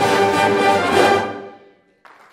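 A brass band plays loudly in a large echoing hall, then stops.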